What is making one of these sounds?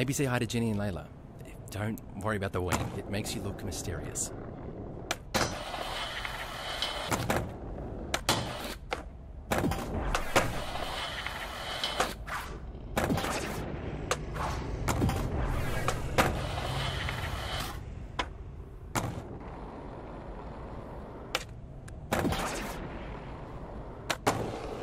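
Skateboard wheels roll and grind along rails and floors.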